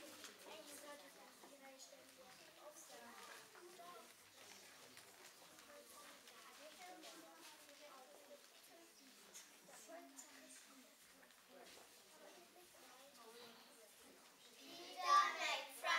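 Children chatter and murmur in an echoing hall.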